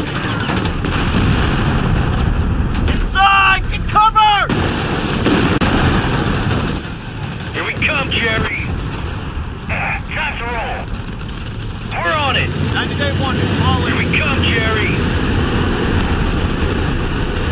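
Gunfire and explosions rumble steadily in the distance.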